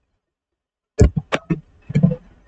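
Punches and blasts from a video game fight thud and crack in quick bursts.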